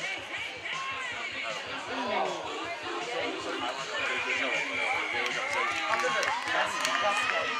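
Young women shout and call to each other across an open field.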